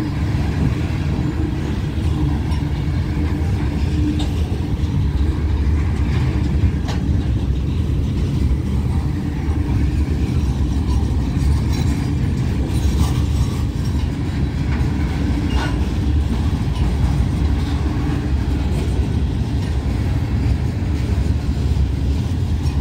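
Steel wheels clack over rail joints.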